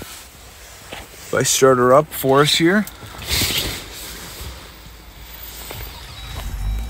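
A car engine rumbles softly from inside the cabin.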